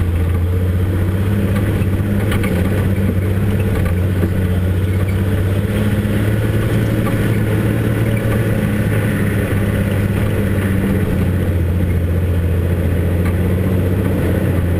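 Tyres crunch and rattle over a bumpy dirt track.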